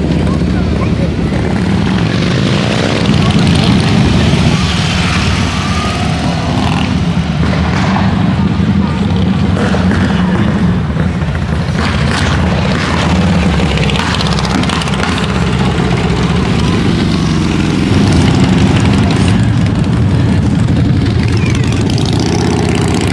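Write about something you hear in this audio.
Motorcycle engines rumble loudly as they ride past.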